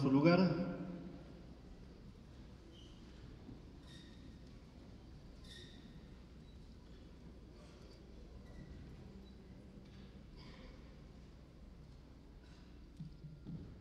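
A crowd murmurs quietly in an echoing hall.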